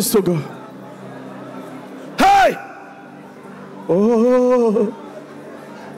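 A crowd of men and women cries out in loud, drawn-out sung tones.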